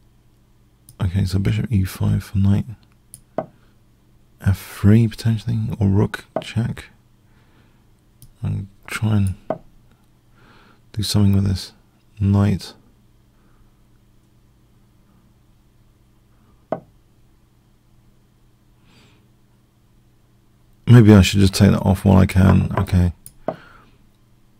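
A middle-aged man talks calmly into a close microphone, in short bursts with pauses.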